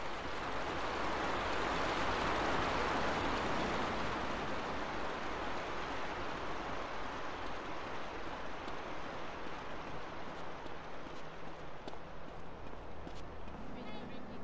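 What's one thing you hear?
Footsteps run quickly and evenly across soft ground.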